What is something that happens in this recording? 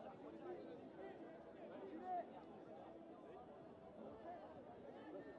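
Young women players shout to each other on the field.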